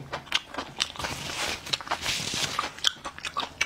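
A napkin rustles against a man's mouth.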